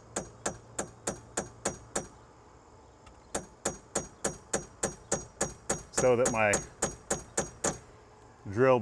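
A hammer taps on a metal punch in quick, even blows.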